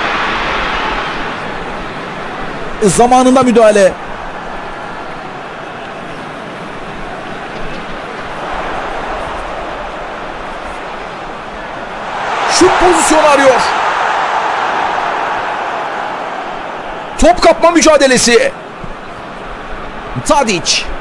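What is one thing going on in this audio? A stadium crowd roars steadily, swelling and fading.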